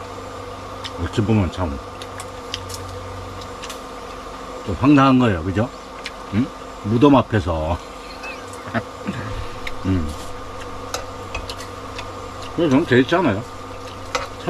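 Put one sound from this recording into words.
An elderly man talks calmly and close by, in short bursts.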